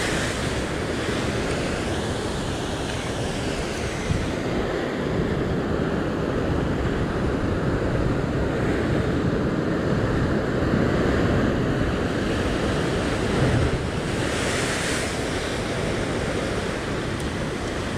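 Waves surge and wash against rocks below.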